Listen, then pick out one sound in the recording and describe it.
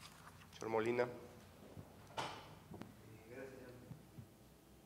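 A man speaks briefly into a microphone in a large room.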